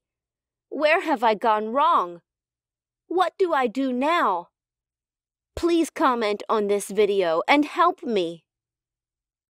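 A young woman speaks in a hesitant, emotional voice.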